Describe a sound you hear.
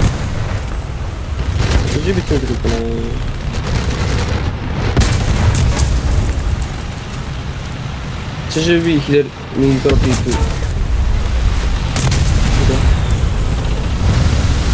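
Explosions burst nearby.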